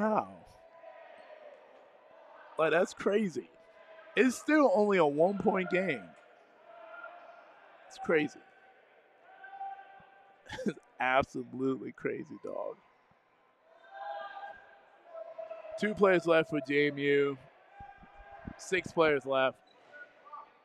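A man talks loudly close by in a large echoing hall.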